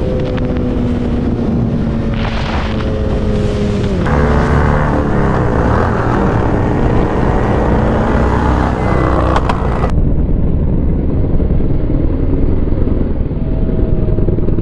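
A motorcycle engine roars at high speed.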